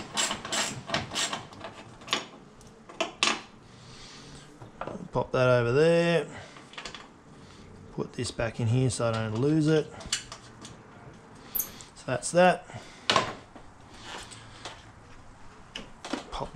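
A ratchet wrench clicks as bolts are turned.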